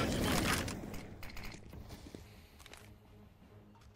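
A rifle scope clicks as it zooms in.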